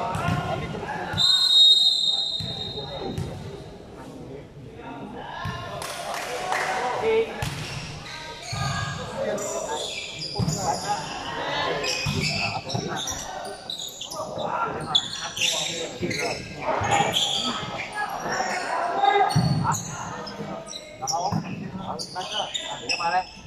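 A crowd of young people chatters and shouts in a large echoing hall.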